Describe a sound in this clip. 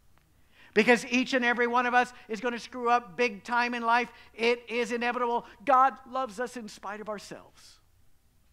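A middle-aged man speaks with animation through a microphone in a large room.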